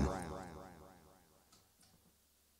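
A harmonica sounds a chord that quickly fades away.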